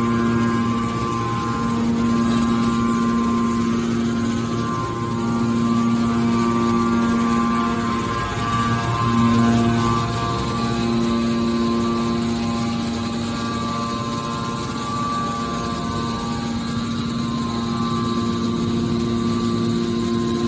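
A hydraulic machine's motor hums steadily and loudly.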